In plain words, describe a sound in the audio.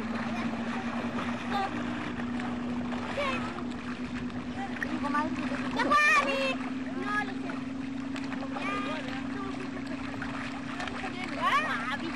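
Water splashes softly as a swimmer strokes through a lake.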